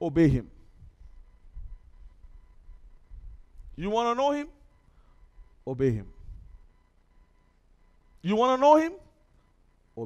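A man speaks with animation into a headset microphone, in short bursts with pauses.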